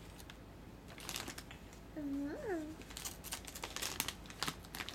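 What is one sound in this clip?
Wrapping paper crinkles and rustles.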